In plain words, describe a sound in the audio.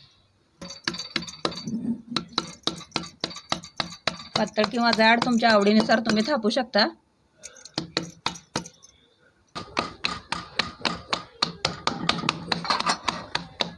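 Hands pat and press dough with soft dull thuds.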